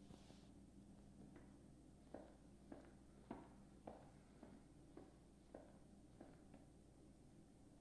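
Footsteps sound slowly.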